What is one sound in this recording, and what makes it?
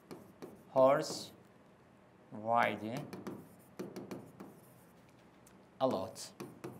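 A young man speaks clearly and calmly, close by.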